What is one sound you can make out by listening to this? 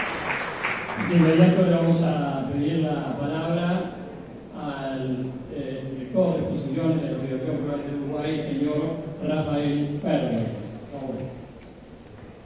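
A man speaks calmly through a loudspeaker in an echoing hall.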